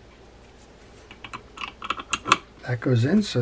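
Small metal parts click and tap together.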